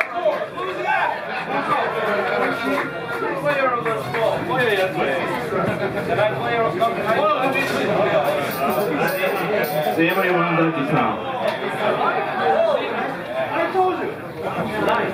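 A live rock band plays loudly with electric guitars, bass and drums.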